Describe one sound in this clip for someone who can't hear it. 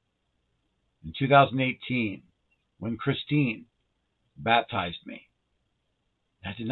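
A middle-aged man speaks calmly in short phrases, close to a microphone.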